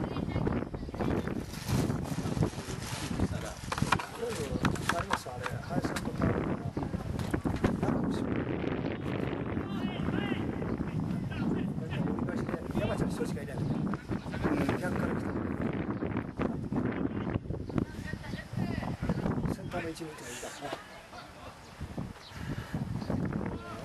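Young men shout to each other across a large open field.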